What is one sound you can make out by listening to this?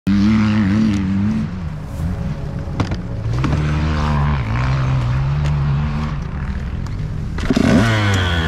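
A dirt bike engine idles nearby with a low rumble.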